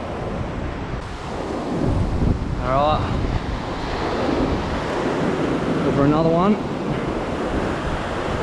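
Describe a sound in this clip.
Surf breaks and washes up a sandy beach.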